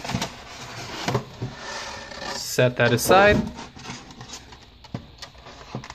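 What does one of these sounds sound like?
A plastic tray crinkles and clacks.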